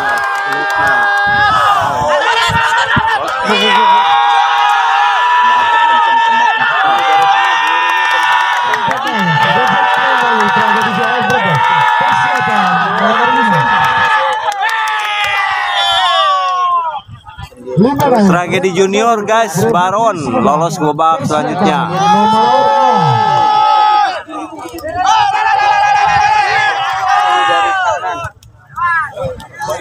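A crowd of men shouts and cheers loudly outdoors.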